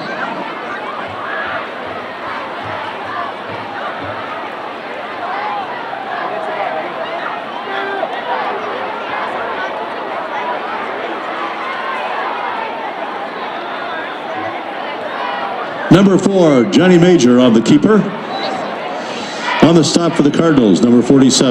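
A crowd murmurs and chatters steadily in an open stadium.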